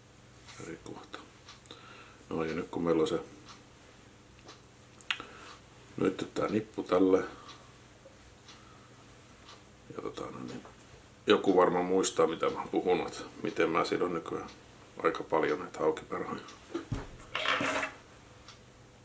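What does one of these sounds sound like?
A man talks calmly and closely.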